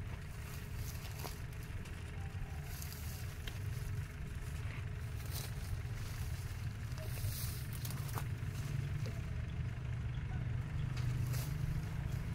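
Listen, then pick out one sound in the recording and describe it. Leaves rustle softly as they are picked from a plant.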